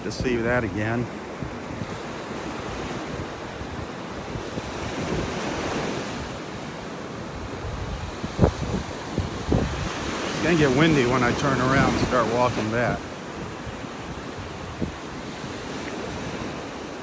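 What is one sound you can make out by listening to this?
Gentle waves wash onto the shore.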